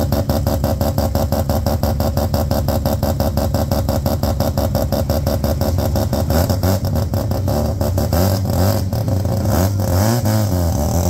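A car engine idles with a loud, lumpy rumble close by.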